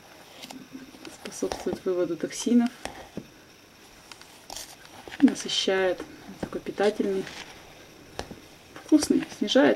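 A metal scoop scrapes and digs through dry flour.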